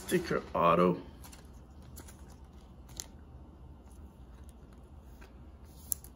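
A trading card slides into a plastic sleeve.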